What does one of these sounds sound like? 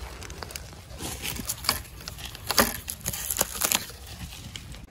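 Dry plant stalks crackle and snap as a hand handles them.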